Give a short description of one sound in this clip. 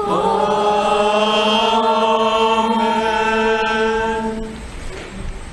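A man sings a long chanted line through a microphone, echoing in a large hall.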